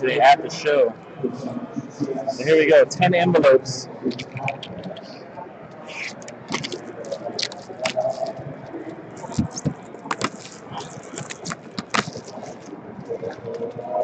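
Plastic wrap crinkles and rustles as it is handled.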